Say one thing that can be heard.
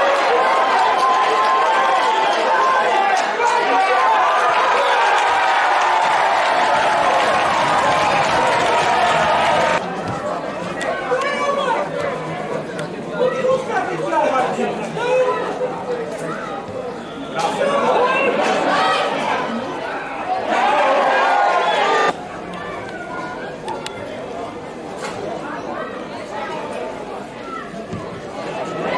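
Men shout to one another across an open field.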